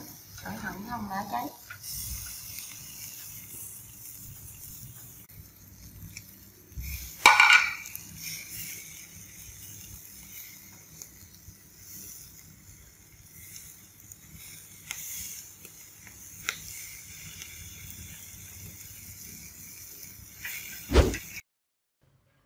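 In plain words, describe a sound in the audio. Meat sizzles and crackles softly over hot charcoal.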